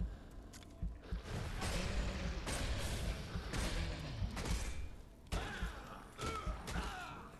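Heavy blows strike and clash again and again.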